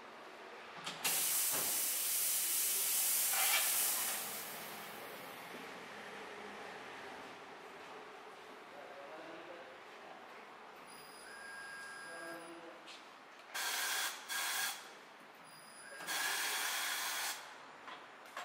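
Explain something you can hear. A tyre changer machine hisses with bursts of compressed air.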